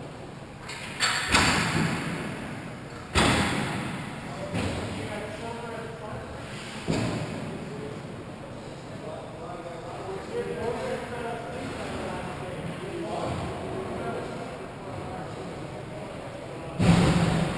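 Ice skates scrape and swish across the ice in a large echoing rink.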